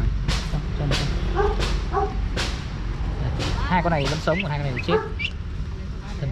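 Ducklings peep and cheep nearby.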